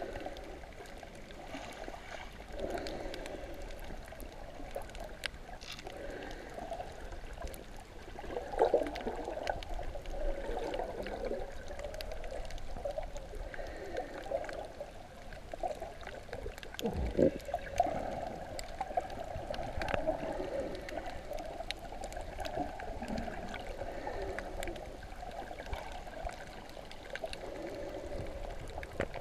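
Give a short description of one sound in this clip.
Water swishes and gurgles in muffled bursts, heard from underwater.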